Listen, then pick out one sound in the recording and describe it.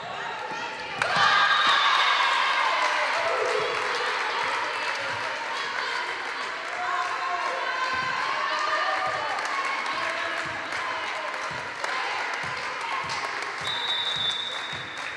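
A small crowd cheers and claps.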